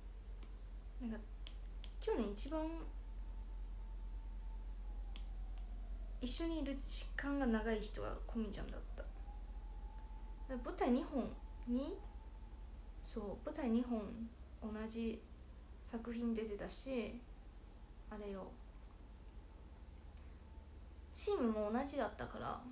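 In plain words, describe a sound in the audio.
A young woman speaks softly and close by, in short bursts with pauses.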